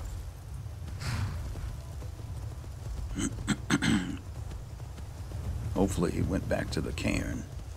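Horse hooves clop on dirt at a steady trot.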